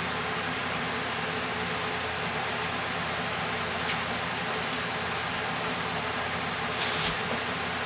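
A spoon squelches as it stirs a thick, wet mixture.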